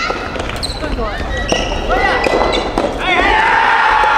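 A soft tennis racket serves a rubber ball with a hollow pop in a large echoing hall.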